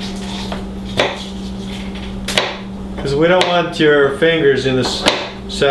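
A knife chops on a cutting board with sharp taps.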